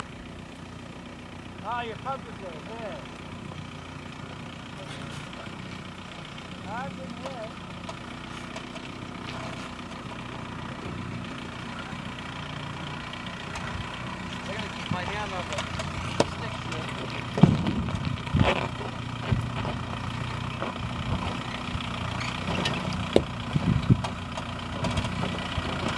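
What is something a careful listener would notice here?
An off-road vehicle's engine rumbles as it slowly climbs closer.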